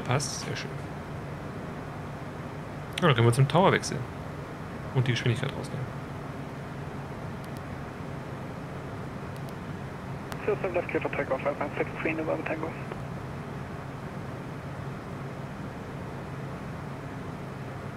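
A jet engine hums steadily.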